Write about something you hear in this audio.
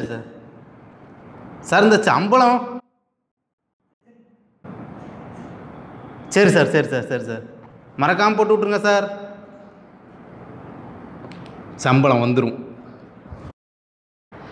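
A young man talks on a phone with animation, close by.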